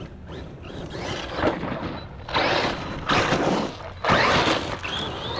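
A small electric motor whines as a toy car drives fast over dirt.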